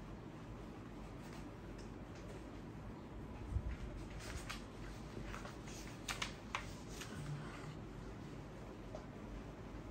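A cloth rubs and wipes across a whiteboard.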